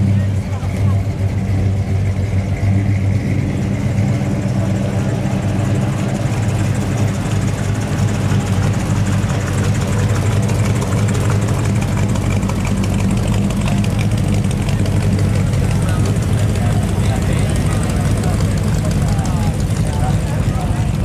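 An old truck engine idles with a deep, steady rumble.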